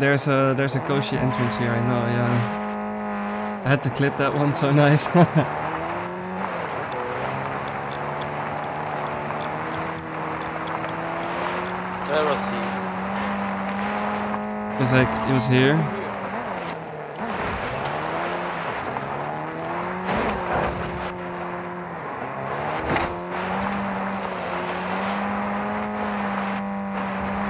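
A vehicle engine drones steadily, rising and falling in pitch as it revs.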